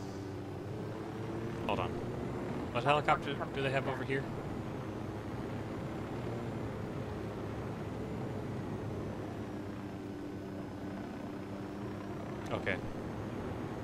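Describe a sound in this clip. A helicopter's rotor thumps and its engine drones steadily.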